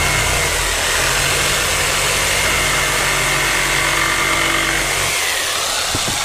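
A power drill whirs loudly up close.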